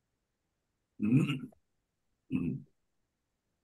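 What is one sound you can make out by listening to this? A middle-aged man speaks briefly over an online call.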